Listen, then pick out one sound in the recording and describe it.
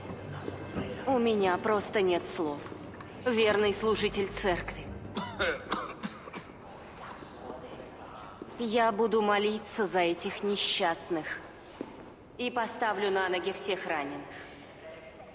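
A woman speaks calmly and softly.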